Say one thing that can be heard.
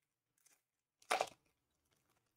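A foil card pack tears open.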